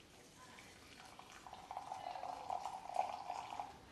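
Hot water pours steadily from a kettle into a glass jug.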